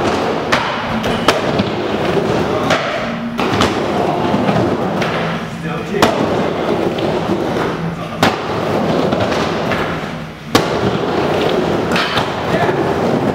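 Skateboard wheels roll and rumble steadily over a wooden bowl, echoing under a curved metal roof.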